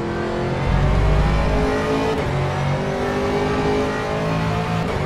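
A race car engine roars loudly, its pitch rising and falling as the car shifts gears.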